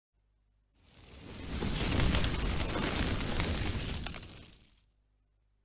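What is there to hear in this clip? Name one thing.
A fire roars and whooshes, then fades away.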